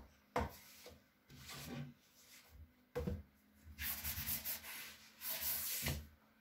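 Glossy magazines slide and rustle as they are handled.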